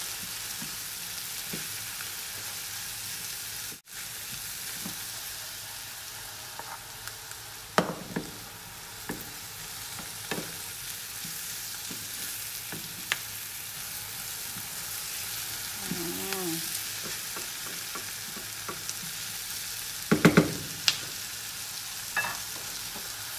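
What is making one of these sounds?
A wooden spatula scrapes and taps against a frying pan while stirring mushrooms and onions.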